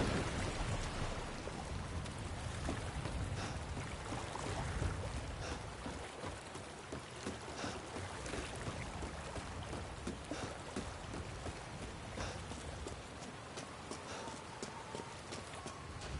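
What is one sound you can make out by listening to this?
Footsteps thud on wooden boards and stone.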